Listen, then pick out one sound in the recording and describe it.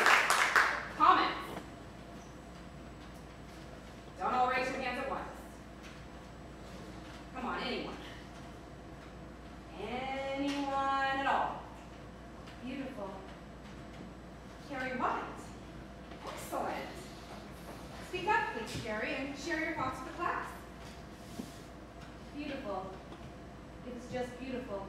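A woman speaks clearly to a group, with pauses, in a hall.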